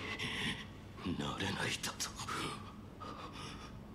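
A young man speaks in a strained, troubled voice close by.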